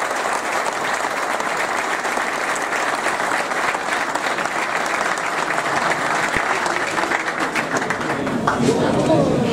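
A large crowd claps and applauds in a hall.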